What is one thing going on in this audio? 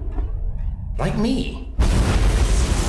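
A man laughs menacingly up close.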